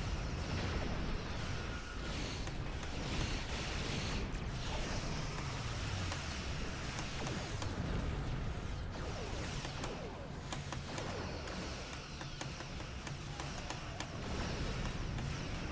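Laser weapons fire and explosions boom in a space battle.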